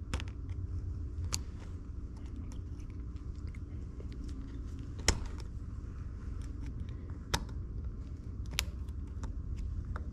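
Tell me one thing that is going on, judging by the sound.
Small metal parts click and scrape as a screwdriver works on a piston.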